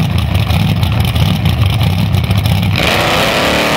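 A drag racing engine idles loudly with a rough rumble.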